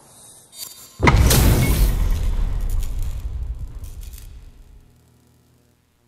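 A video game plays a loud booming whoosh that slowly fades.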